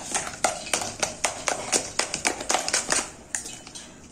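An electric hand mixer whirs and rattles against a metal bowl.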